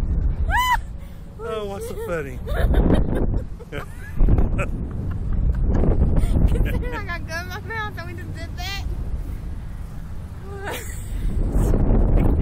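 A young woman screams and laughs close by.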